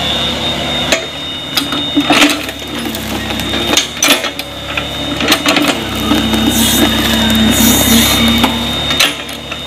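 An excavator bucket scrapes and thuds into soil and roots.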